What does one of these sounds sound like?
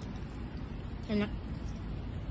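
A young woman briefly hums with pleasure close by.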